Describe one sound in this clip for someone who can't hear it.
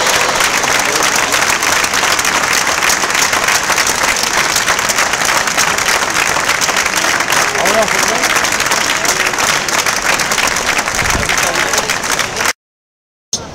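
A large crowd applauds loudly.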